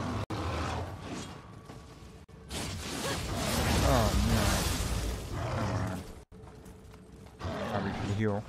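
Swords clash.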